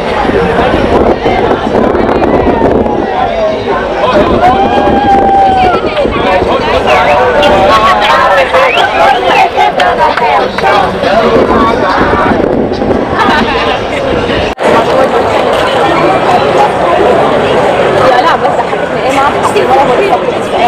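A busy street crowd chatters all around, outdoors.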